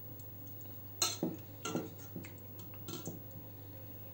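A metal spoon clinks against a steel pot.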